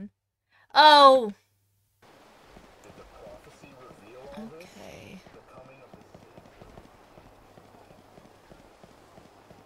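A young woman speaks casually close to a microphone.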